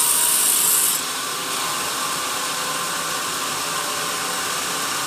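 A band saw blade runs on with a steady whine after the cut ends.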